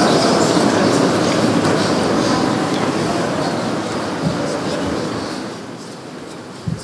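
A crowd of men murmurs and calls out in a large echoing hall.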